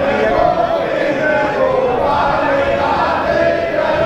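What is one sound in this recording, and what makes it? An elderly man speaks close by.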